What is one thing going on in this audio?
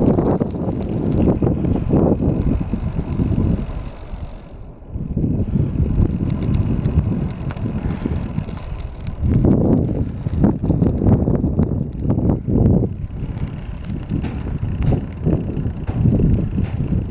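Wind rumbles and buffets outdoors in gusts.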